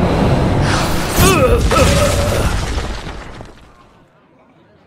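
A magical game sound effect whooshes and rings out, then fades.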